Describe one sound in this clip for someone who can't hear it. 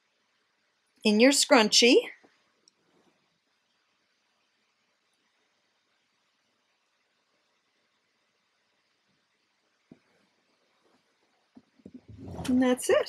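An older woman speaks calmly close by.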